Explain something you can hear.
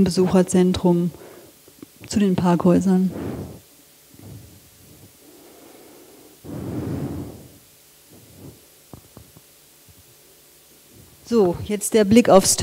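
A woman speaks calmly through a microphone, pausing often.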